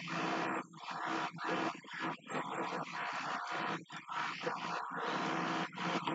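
A harmonica plays close by in bursts.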